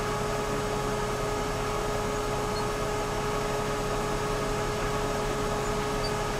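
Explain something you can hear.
An excavator's hydraulics whine as its arm moves.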